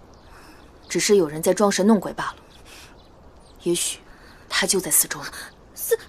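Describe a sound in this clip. A young woman speaks calmly and nearby.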